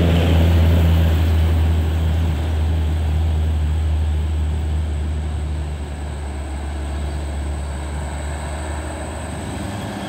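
A motorbike engine buzzes past.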